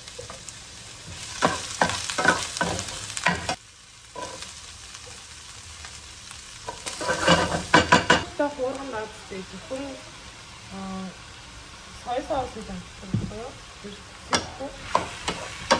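A spatula scrapes and clatters against a pan.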